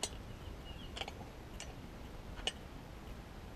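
A metal wrench clicks and clinks against a bolt.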